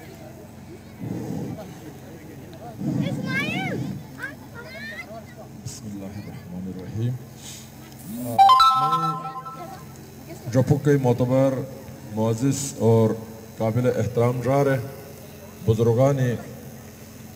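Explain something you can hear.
A man shouts slogans through a loudspeaker outdoors.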